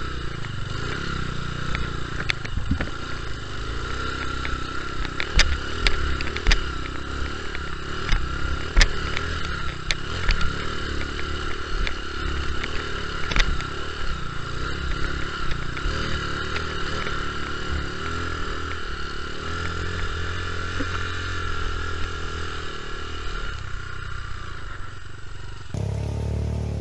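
A dirt bike engine hums and revs steadily close by.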